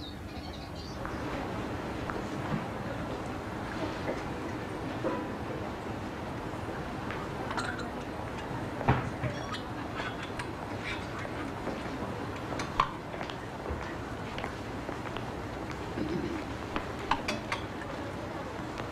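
A crowd of shoppers murmurs in a busy indoor hall.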